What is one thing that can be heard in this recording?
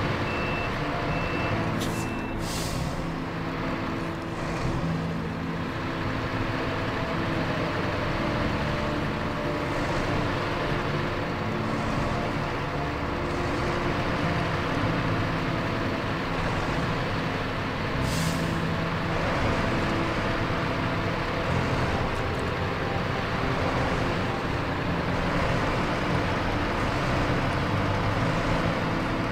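A heavy truck engine rumbles steadily as the truck crawls over rough ground.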